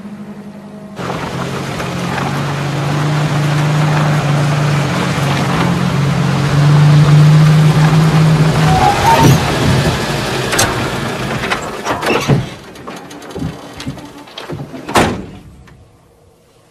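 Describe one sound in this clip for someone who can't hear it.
A van engine rumbles steadily close by.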